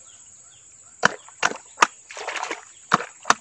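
Water splashes as a man's hands dig in a muddy puddle.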